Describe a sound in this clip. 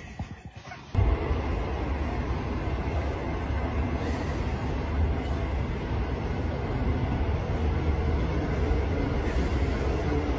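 A cat growls low and steadily.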